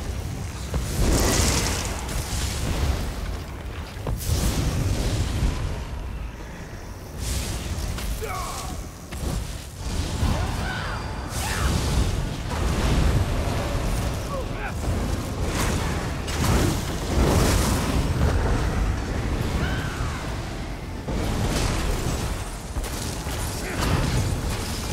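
Magic spells crackle and explode in a video game battle.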